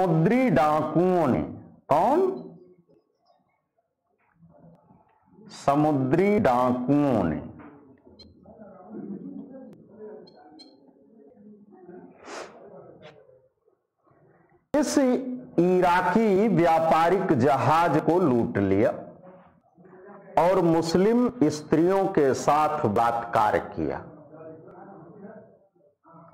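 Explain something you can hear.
A man lectures with animation, close by.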